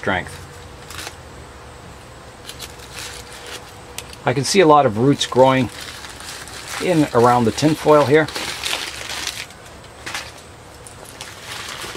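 Aluminium foil crinkles softly as a hand presses it around a pot.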